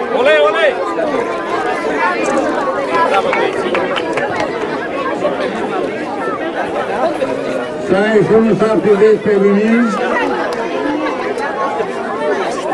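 A crowd of children and adults chatters and calls out outdoors.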